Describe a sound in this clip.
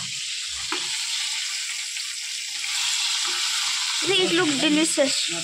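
Hot oil sizzles and crackles steadily as food fries in a pan.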